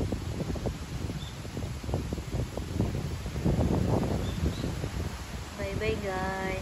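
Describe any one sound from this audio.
Wind blows in gusts outdoors, rustling tree leaves.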